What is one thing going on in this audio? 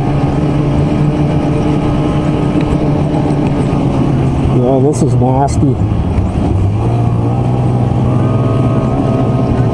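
A snowmobile engine drones steadily close by.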